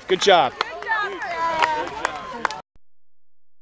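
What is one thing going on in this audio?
A crowd of spectators cheers and calls out outdoors.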